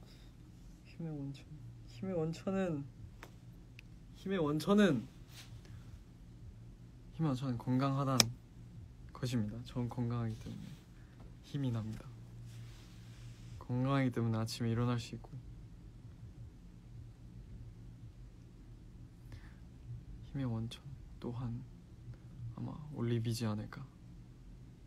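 A young man speaks calmly and softly into a microphone close by, with pauses.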